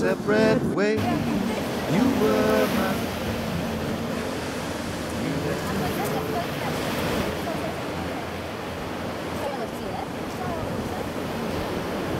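Waves wash onto the shore with a steady rush.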